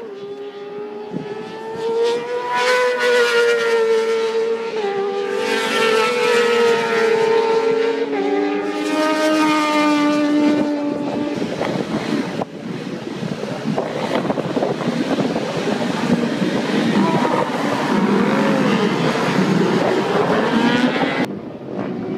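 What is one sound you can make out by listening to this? Racing motorcycle engines roar past at high speed.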